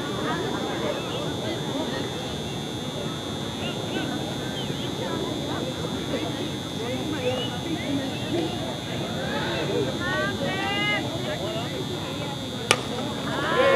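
Men and women chatter and call out across an open field.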